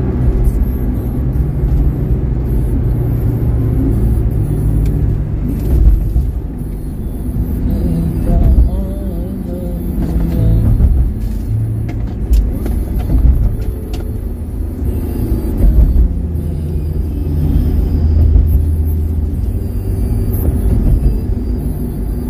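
A car drives steadily along a highway with a low road rumble.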